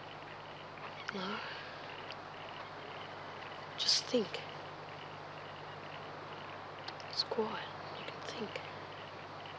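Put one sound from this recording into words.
A boy speaks quietly.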